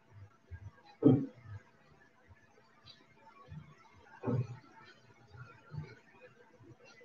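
A woman shifts her weight on an exercise mat with soft thumps.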